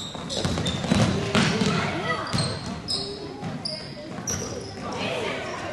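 Children shout and call out across the echoing hall.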